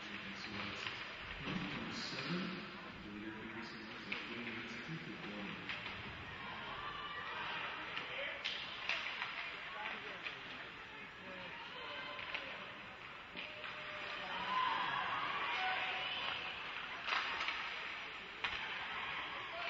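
Skates scrape and hiss on ice in a large echoing arena.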